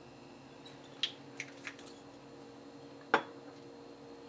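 Glass clinks as drinks are mixed.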